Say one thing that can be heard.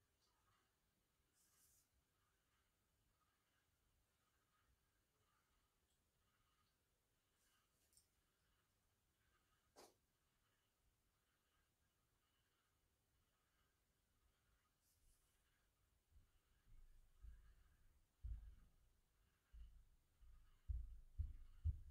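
A cord rustles softly as it is pulled and tied by hand.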